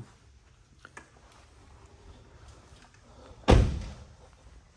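A vehicle door shuts with a thud.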